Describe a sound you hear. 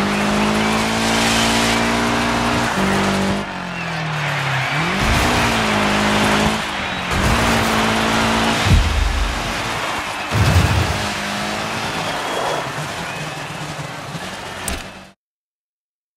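Tyres crunch and skid on dirt.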